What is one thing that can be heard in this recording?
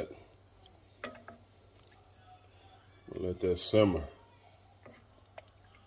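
A wooden spoon scrapes and knocks against a pot while stirring thick sauce.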